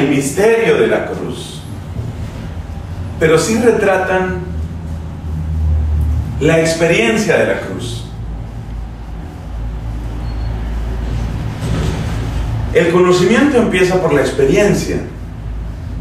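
A man speaks calmly and slowly through a small clip-on microphone, with long pauses.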